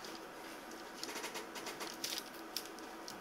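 Paper packets rustle and tap on a counter.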